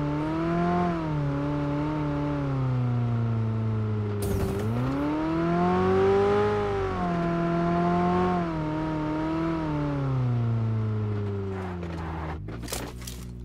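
A car engine revs up and down as it drives over rough ground.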